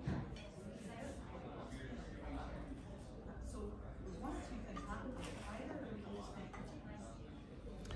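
Cutlery scrapes and clinks on a plate.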